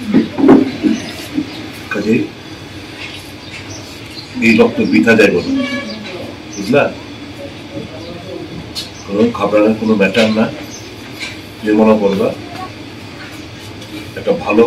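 A middle-aged man speaks calmly in short bursts, close by.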